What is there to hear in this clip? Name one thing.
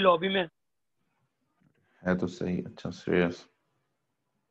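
A man lectures in short bursts, with pauses in between.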